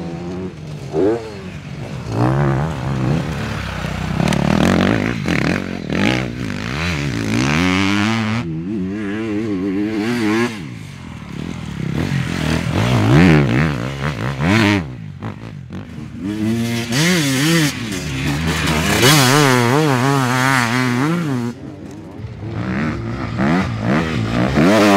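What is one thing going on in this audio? A dirt bike engine revs hard, rising and falling in pitch.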